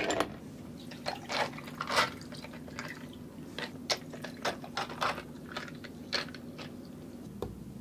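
Thick juice pours into glasses.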